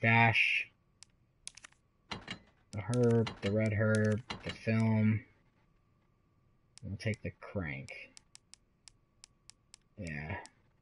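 Soft menu clicks tick as a cursor moves through a list.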